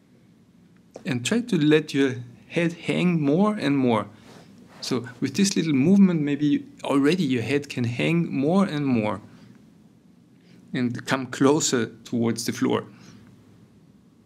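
A middle-aged man speaks softly and closely into a microphone, with pauses.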